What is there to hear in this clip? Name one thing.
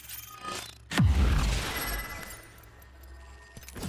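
A deep shimmering whoosh rings out as a crystal structure rises up.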